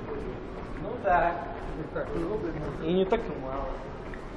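A man talks loudly nearby as he walks past.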